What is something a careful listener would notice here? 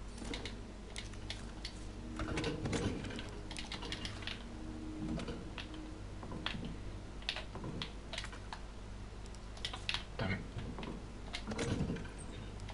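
Short menu clicks tick quickly, again and again.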